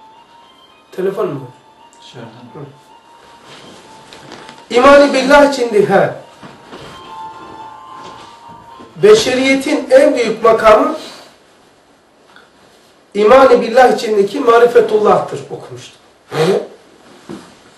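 An elderly man reads aloud slowly in a chanting voice, close by.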